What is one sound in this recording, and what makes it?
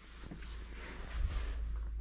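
A closet door is pushed and swings on its hinges.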